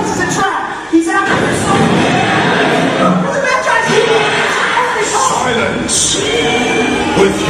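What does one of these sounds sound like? A deep male voice speaks dramatically over loudspeakers in an echoing space.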